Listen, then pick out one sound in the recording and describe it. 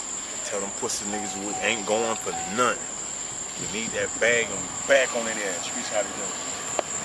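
A young man talks into a phone nearby.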